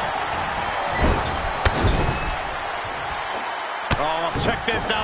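Bodies slam hard onto a wrestling ring mat.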